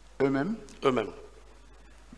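A man speaks into a microphone in short phrases.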